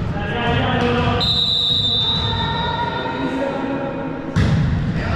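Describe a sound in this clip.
Young men shout across a large echoing gym.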